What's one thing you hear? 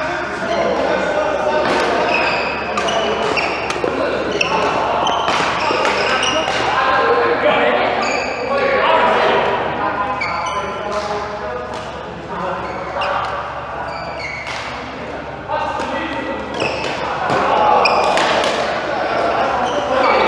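Sports shoes squeak on the court floor.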